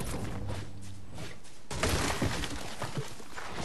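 A pickaxe strikes wood with sharp knocks.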